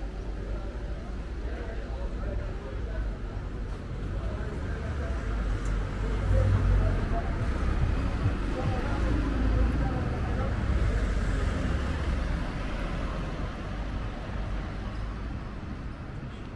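Footsteps walk along a pavement outdoors.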